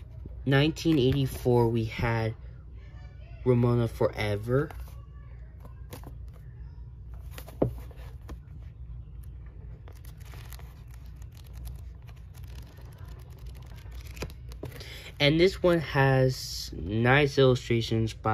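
Paper pages rustle and flutter as a book is flipped through.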